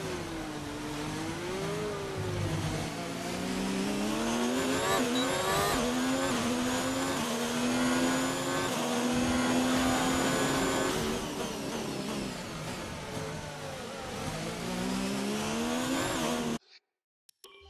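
A racing car engine screams loudly, rising and falling in pitch as the gears change.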